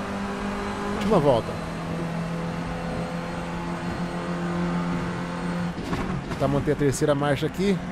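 A race car engine drops in pitch as the driver shifts gears.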